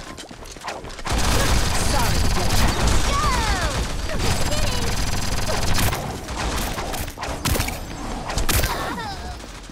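Energy beams whoosh and crackle.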